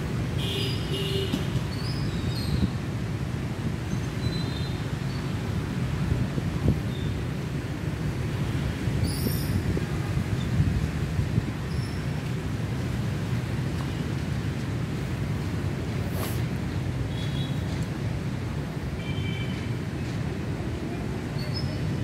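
Wind blows in gusts.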